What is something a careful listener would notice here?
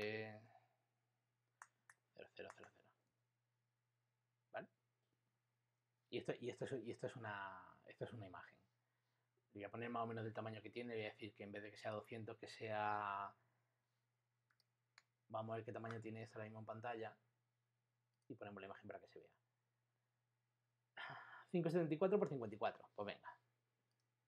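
A man speaks calmly and explains into a close microphone, in short bursts with pauses.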